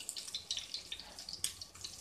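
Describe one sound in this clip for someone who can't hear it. A metal spatula scrapes against a frying pan.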